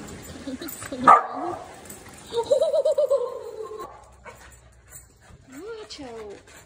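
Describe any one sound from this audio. A puppy yelps and whines in high, wavering cries, echoing in a large hall.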